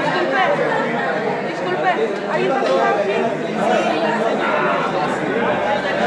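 A crowd of adults and children chatters.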